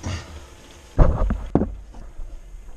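A close, heavy bump and rustle sounds as something brushes against a wooden frame.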